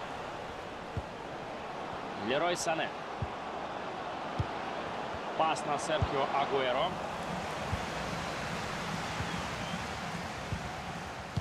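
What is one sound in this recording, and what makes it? A football is kicked with short dull thuds.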